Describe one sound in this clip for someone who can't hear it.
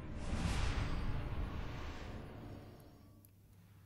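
A whooshing rumble fades away.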